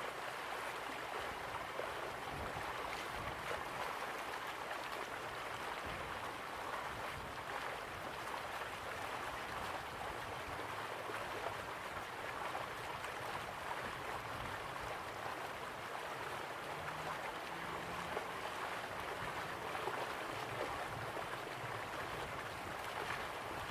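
A stream rushes over rocks.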